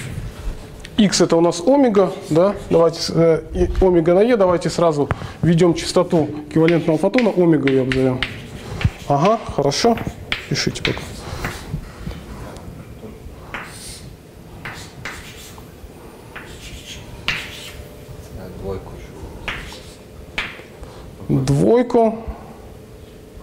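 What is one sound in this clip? A young man speaks with animation in an echoing room.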